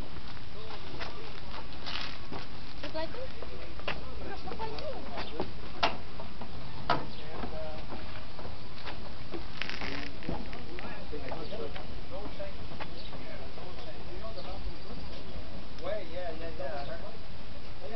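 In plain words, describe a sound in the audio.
Bicycle parts click and rattle as bikes are wheeled.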